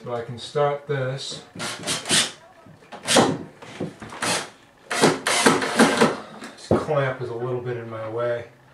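Hands scrape and rustle against wooden wall framing.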